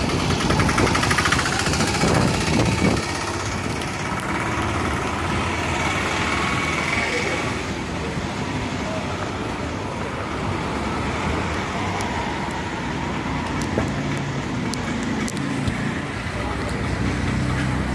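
Wind rushes steadily across a microphone outdoors.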